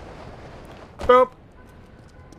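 A heavy body thuds onto the ground.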